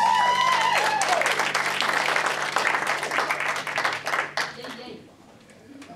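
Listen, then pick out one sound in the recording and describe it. A live band plays music in a room with an echo and then stops.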